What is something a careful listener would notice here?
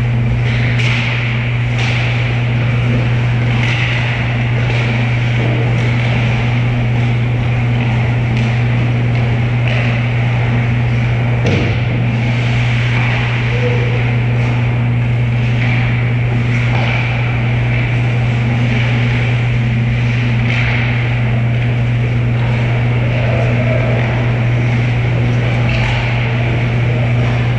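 Skates scrape and hiss on ice in a large echoing hall.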